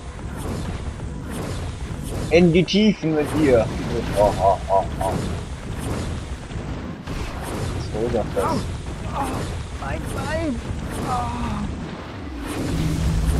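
Rapid weapon strikes land again and again in a fight.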